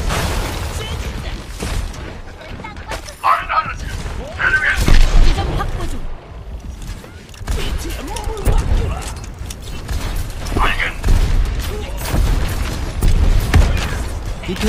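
Gunfire from a game crackles in rapid bursts.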